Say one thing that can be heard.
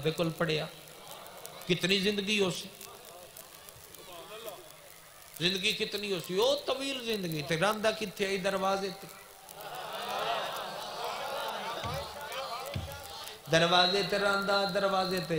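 A man speaks passionately through a loudspeaker microphone, his voice rising into long chanted lines.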